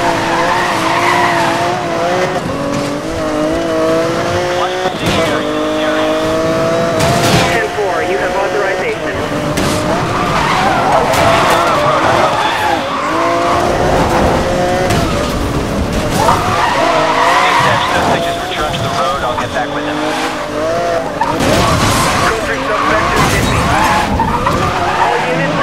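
Tyres screech as a car skids and drifts.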